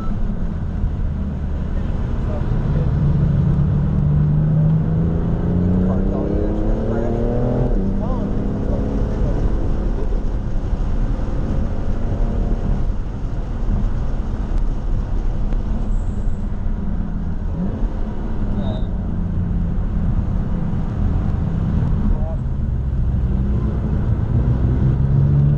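A car engine roars loudly from inside the cabin, rising and falling in pitch through gear changes.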